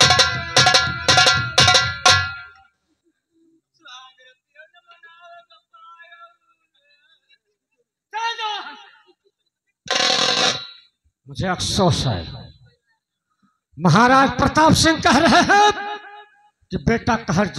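A man sings loudly through a loudspeaker outdoors.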